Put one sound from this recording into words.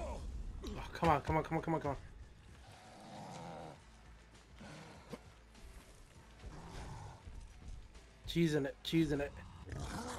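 A monster snarls loudly.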